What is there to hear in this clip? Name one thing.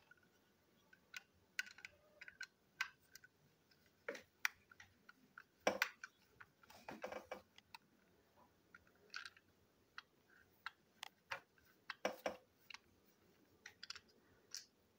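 Plastic parts click and rattle as fingers handle a small toy car.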